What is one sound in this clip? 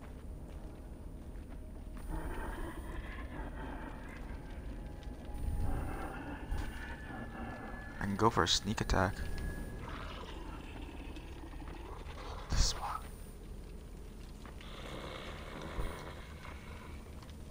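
Footsteps rustle softly through grass and dirt.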